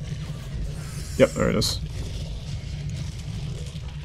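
A monster snarls and growls.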